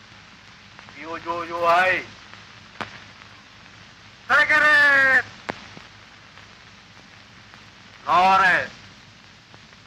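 A man shouts commands loudly.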